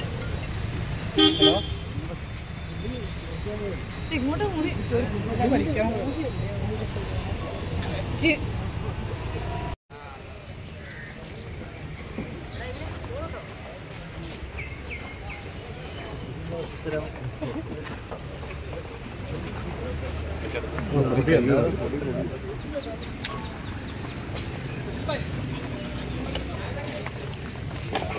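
A crowd of men chatter and call out excitedly outdoors nearby.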